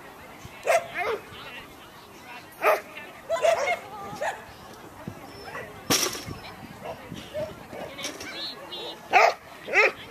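A woman calls out commands to a dog in the open air.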